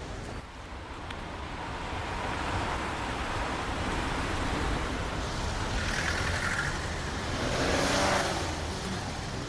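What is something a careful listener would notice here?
City traffic rolls past on a street.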